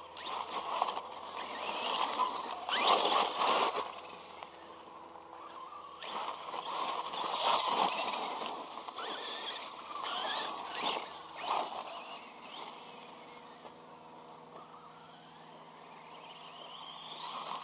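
An electric motor whines and revs as a toy car speeds about.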